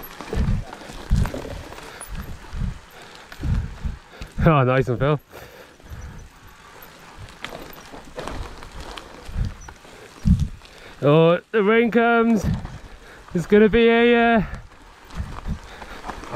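A bicycle rattles and clunks over bumps.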